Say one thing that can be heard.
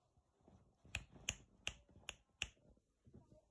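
A puppy's ears flap as it shakes its head.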